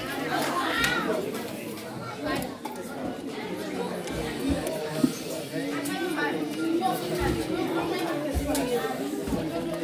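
Children's footsteps patter on a wooden floor.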